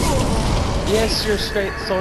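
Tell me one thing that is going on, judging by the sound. Flames roar in a burst of fire.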